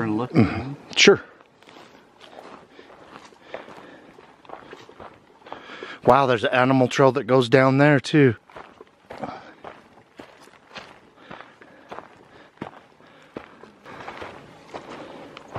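Footsteps crunch on dry forest ground.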